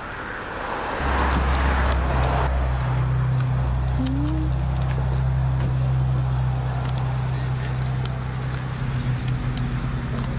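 A pickup truck's engine rumbles steadily nearby.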